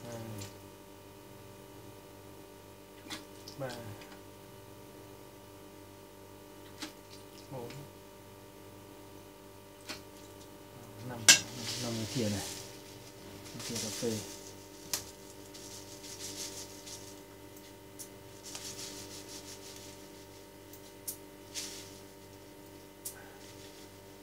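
A metal spoon clinks against a metal pot.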